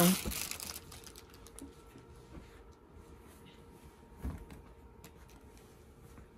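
Cloth rustles softly as it is handled.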